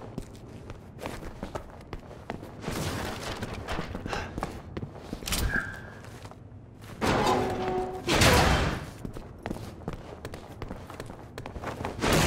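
Footsteps patter quickly over a hard floor.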